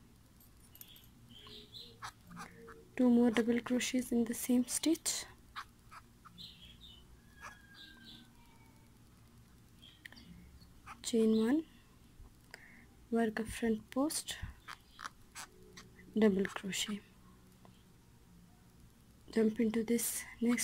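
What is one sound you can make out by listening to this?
A crochet hook rustles softly through yarn.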